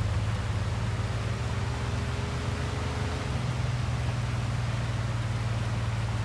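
Rain hisses steadily on the road.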